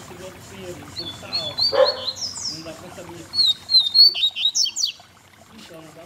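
A caged bird chirps and trills in quick bursts.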